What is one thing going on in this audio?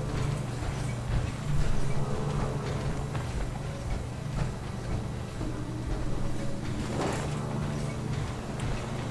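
Heavy metal footsteps clank on a metal grating.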